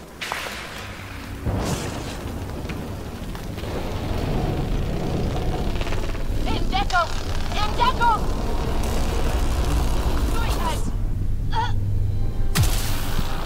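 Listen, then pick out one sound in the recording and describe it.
Rocks crash and tumble in a loud rumbling blast.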